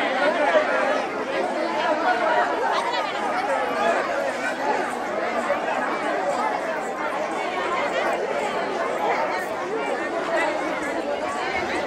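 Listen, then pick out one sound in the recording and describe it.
A large crowd of men and women chatters and murmurs outdoors.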